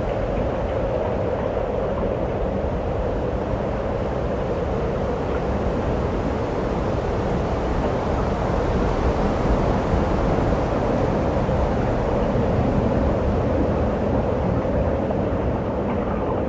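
Wind blows across an open space.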